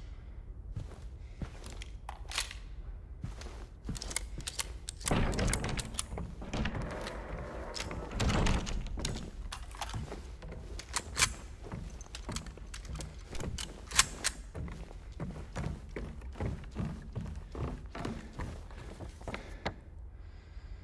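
Footsteps thud and scuff on a hard floor, echoing in a narrow space.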